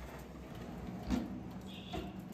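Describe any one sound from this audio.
An oven door swings shut with a thud.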